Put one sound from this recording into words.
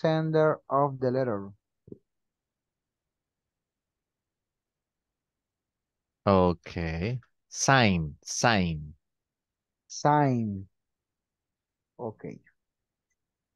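A man speaks calmly through an online call microphone, with pauses.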